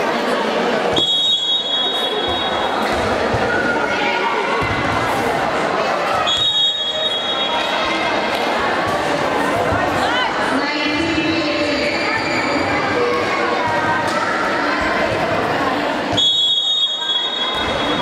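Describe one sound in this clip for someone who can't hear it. A referee's whistle blows short, sharp blasts in a large echoing hall.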